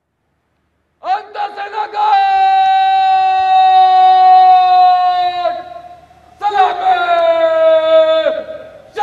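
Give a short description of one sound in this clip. A man shouts long drawn-out parade commands loudly outdoors.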